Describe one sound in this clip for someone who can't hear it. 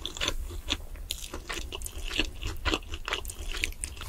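Fried chicken squelches as it is pressed into a thick sauce.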